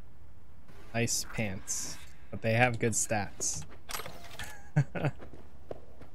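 A young man talks and laughs with animation close to a microphone.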